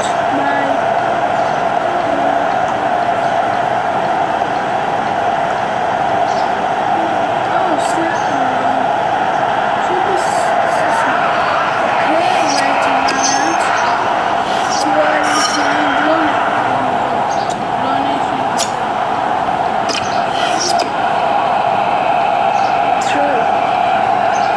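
A young boy talks calmly close to a microphone.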